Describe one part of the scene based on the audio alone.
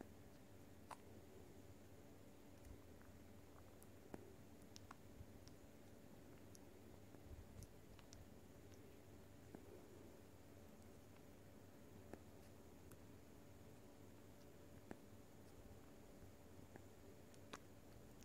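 A bat chews and smacks wetly on soft fruit, with small clicks.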